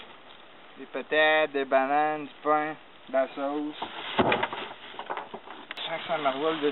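A young man talks nearby outdoors.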